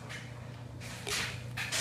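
A glass rod scrapes and taps inside a glass flask.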